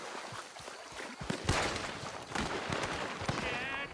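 Footsteps crunch on soft ground.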